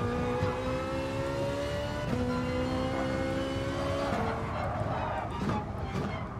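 A racing car engine roars at high revs, dropping in pitch at each gear change.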